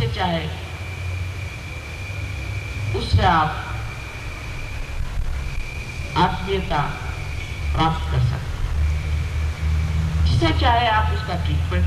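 A woman speaks slowly and calmly into a microphone, with long pauses between phrases.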